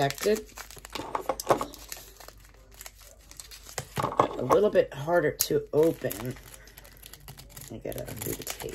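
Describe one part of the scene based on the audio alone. Small objects click and rustle as they are handled.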